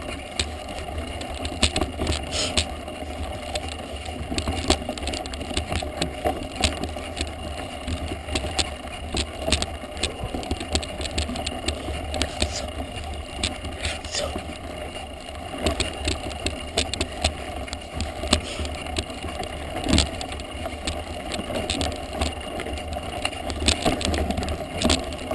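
Knobby bike tyres crunch and roll over a gravel dirt track.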